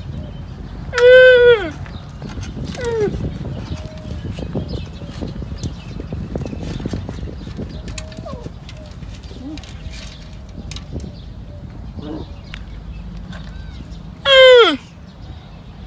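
A young camel calf bleats loudly a few times.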